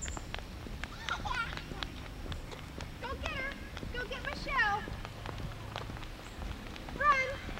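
A young girl calls out in a high voice.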